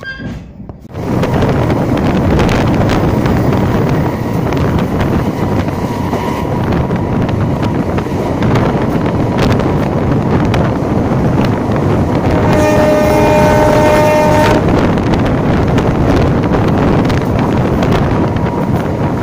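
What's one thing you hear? Wind rushes loudly past a moving train.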